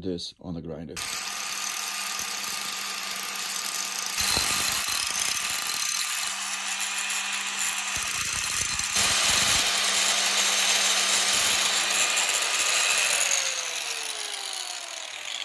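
An angle grinder's motor whirs steadily, then winds down.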